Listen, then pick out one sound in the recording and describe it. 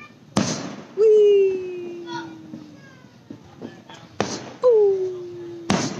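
Fireworks whistle with a falling pitch.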